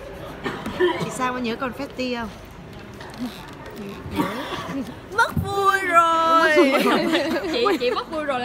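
A young woman talks cheerfully close to a microphone.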